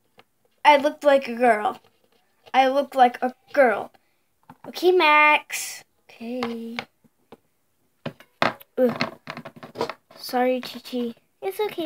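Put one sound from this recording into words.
Small plastic toys tap and scrape on a hard surface.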